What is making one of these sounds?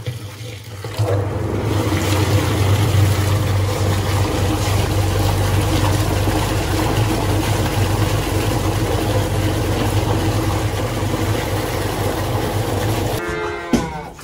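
Water gushes steadily from a hose into a metal tank.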